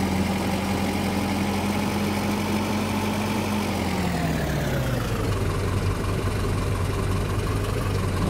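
A bus engine drones, then winds down as the bus slows to a stop.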